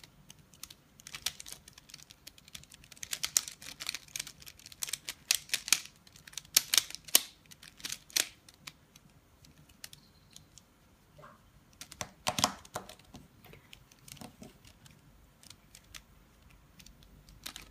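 The layers of a plastic puzzle cube click and clatter as they are turned.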